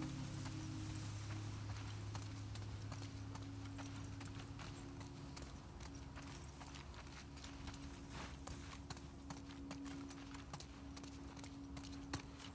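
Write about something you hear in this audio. Footsteps crunch steadily through grass and over pavement.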